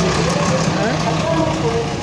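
An auto-rickshaw engine putters past close by.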